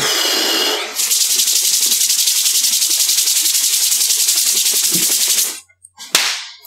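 A young man rubs his hands together quickly.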